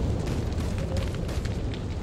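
Torch flames crackle and hiss.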